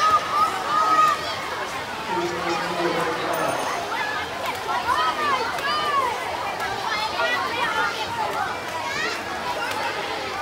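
Spectators whistle shrilly.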